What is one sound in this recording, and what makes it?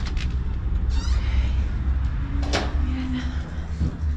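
A door rattles as a woman pulls on it.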